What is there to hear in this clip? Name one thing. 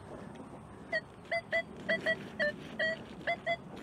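A metal detector beeps in short, repeated tones.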